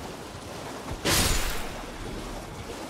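A sword swings with a sharp whoosh.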